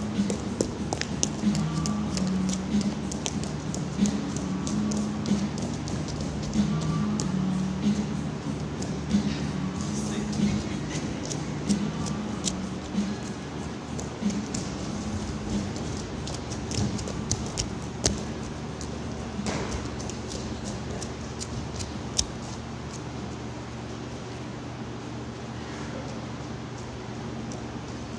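Bare feet thump and shuffle on a mat in a large echoing hall.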